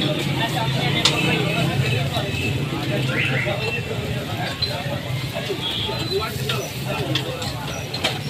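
A metal spatula scrapes and taps against a griddle.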